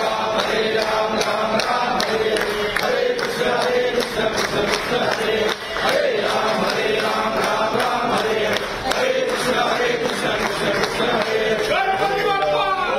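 A crowd of men chants prayers together.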